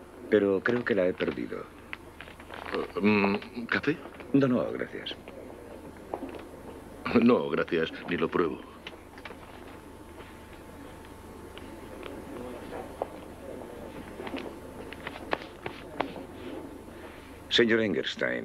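A man speaks calmly in a quiet room.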